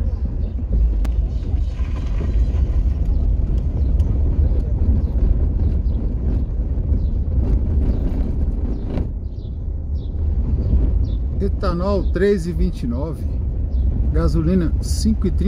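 A car drives along a rough street, heard from inside.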